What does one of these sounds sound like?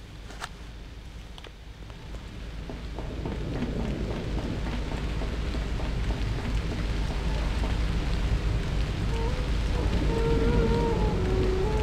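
A low rumble grows steadily louder.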